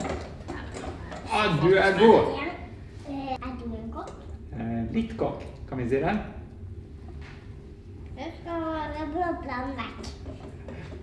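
A small child speaks in a high voice.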